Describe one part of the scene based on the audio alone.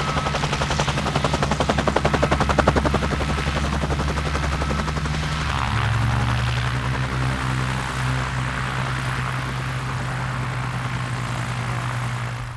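A helicopter engine roars steadily.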